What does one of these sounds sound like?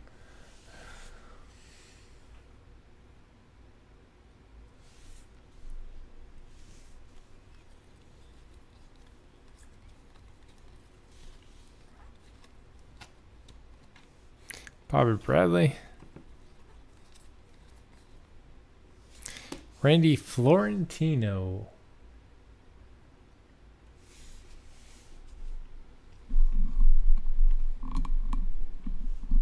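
Trading cards shuffle and slide against each other in quick, soft flicks.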